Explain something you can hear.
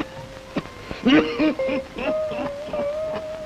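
An elderly man speaks weakly and haltingly, close by.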